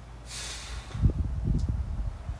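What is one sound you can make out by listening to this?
A man grunts and exhales hard with effort.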